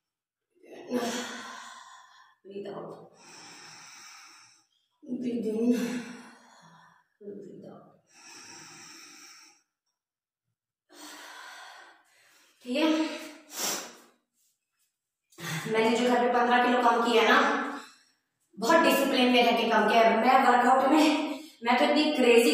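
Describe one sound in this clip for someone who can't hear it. A young woman speaks calmly, with pauses, in a small echoing room.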